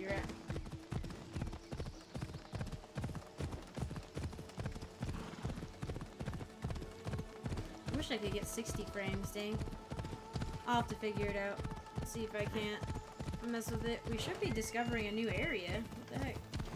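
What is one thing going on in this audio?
Horse hooves thud steadily on a dirt path at a gallop.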